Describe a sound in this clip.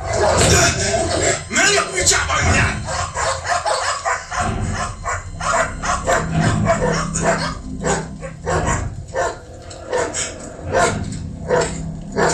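A dog growls and snarls up close.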